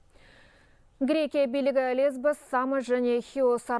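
A woman speaks calmly and clearly into a microphone, like a news presenter.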